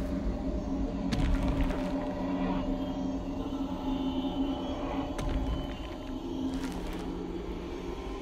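Boots crunch step by step on hard ground.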